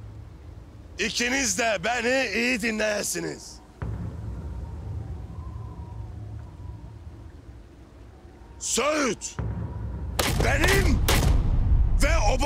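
A man shouts angrily and loudly.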